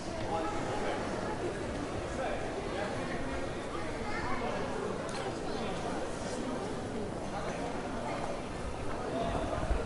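Many people chatter in a large, echoing covered space.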